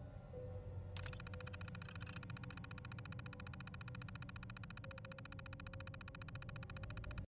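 A computer terminal chatters with rapid, even ticks as text prints out.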